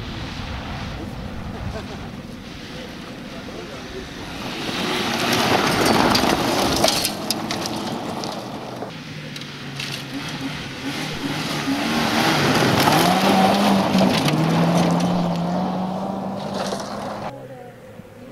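A rally car engine roars and revs hard as it speeds past.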